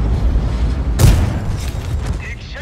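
An explosion blasts nearby.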